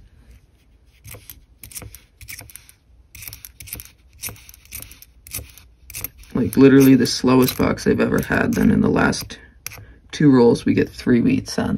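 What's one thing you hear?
Copper coins clink and slide against each other on a table.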